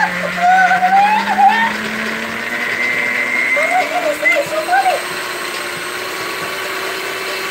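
An electric hand mixer whirs steadily, slowly rising in pitch.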